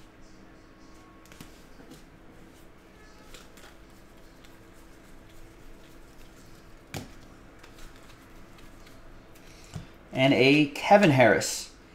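Trading cards shuffle and slide against each other in hands.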